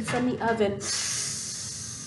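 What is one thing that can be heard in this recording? A young woman speaks expressively, close by.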